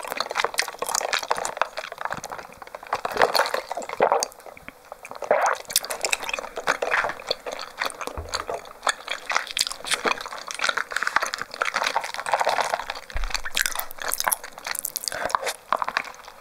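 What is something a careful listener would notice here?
A young woman sips loudly through a straw close to a microphone.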